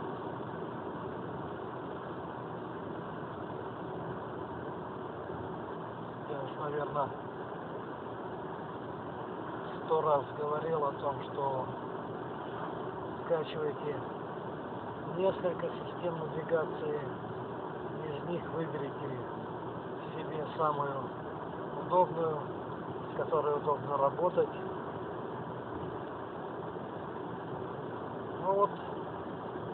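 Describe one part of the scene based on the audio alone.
A car engine hums steadily inside a moving car.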